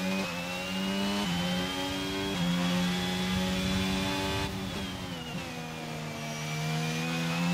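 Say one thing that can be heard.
A racing car engine screams at high revs, dropping briefly with each gear change.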